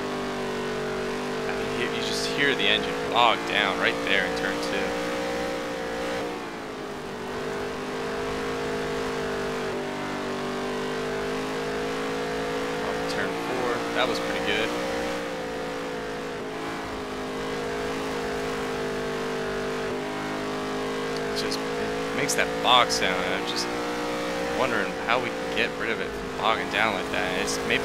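A race car engine roars steadily, rising and falling as it takes the corners.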